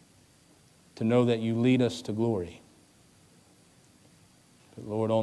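A man speaks slowly and calmly into a microphone.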